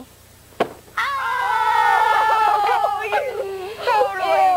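A chick peeps as it hatches from an egg.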